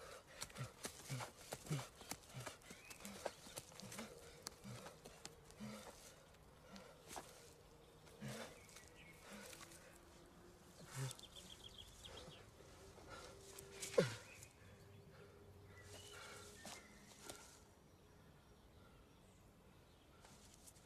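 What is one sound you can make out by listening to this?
Hands scrape and dig in soil and dry leaves.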